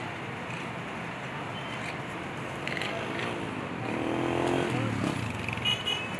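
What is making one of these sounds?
A motorcycle engine revs as it passes close by.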